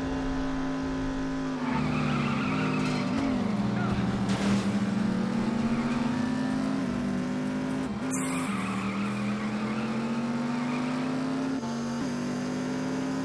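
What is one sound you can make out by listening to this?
A car engine roars steadily, its pitch rising and falling as it shifts gears.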